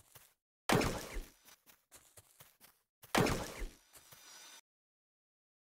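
A gun fires with sharp blasts.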